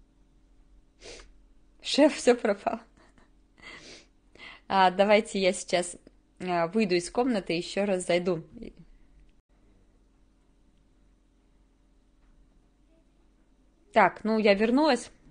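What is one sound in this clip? A young woman speaks calmly and close to a microphone, with pauses.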